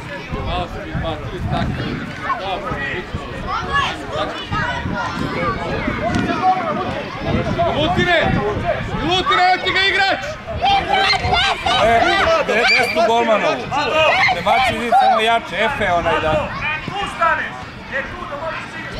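Children shout and chatter excitedly outdoors.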